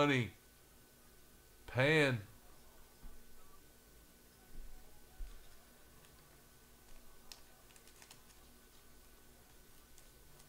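Plastic card sleeves rustle and crinkle in hands.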